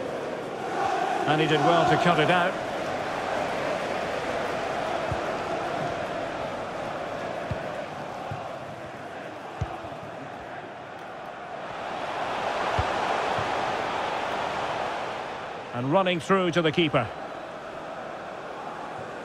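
A large stadium crowd roars steadily, swelling and falling.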